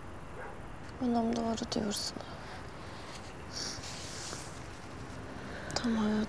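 A young woman speaks in a tearful, shaky voice close by.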